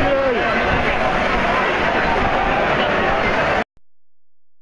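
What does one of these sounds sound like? A large stadium crowd chants and cheers loudly outdoors.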